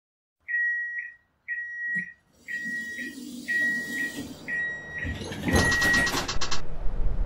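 A tram's warning chime beeps several times.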